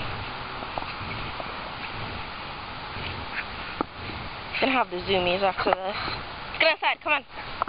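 A dog rolls about on grass, rustling it.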